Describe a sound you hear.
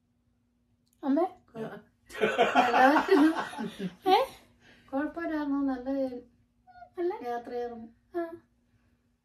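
A middle-aged woman speaks close by in a cheerful, animated way.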